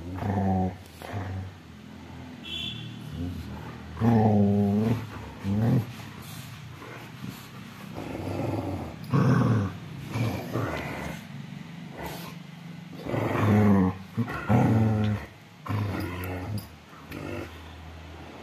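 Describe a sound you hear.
Dogs growl and grumble playfully up close.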